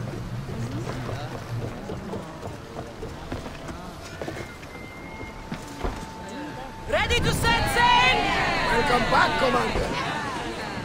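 Waves splash against the hull of a wooden ship.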